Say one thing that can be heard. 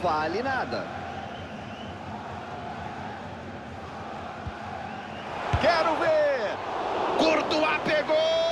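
A large stadium crowd roars steadily and swells louder.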